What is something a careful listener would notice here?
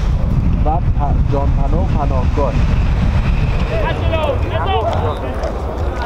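A man speaks to a group outdoors.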